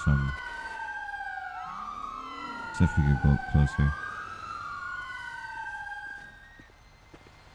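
Sirens wail nearby, rising and falling.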